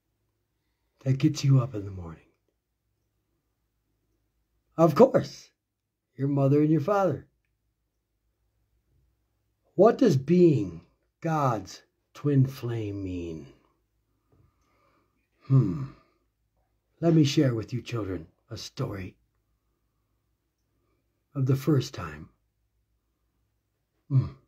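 A middle-aged man speaks calmly and close to the microphone, with pauses between phrases.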